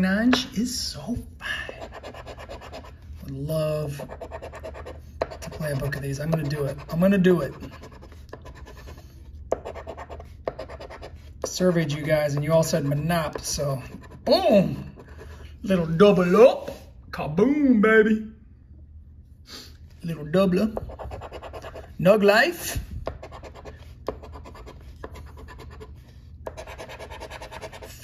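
A coin scratches across a paper card.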